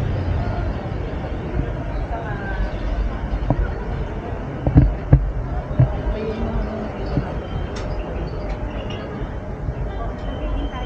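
Street noise of traffic and a crowd fills a busy outdoor street.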